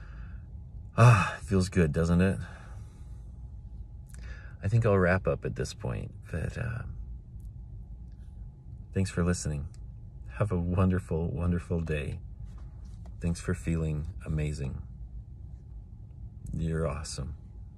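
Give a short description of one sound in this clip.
A middle-aged man talks calmly and warmly close to a phone microphone, in bursts with pauses.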